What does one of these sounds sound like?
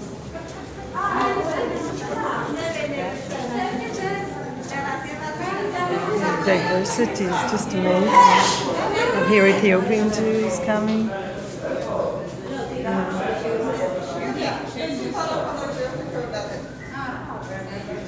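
Several women chant and pray aloud nearby, echoing under a stone vault.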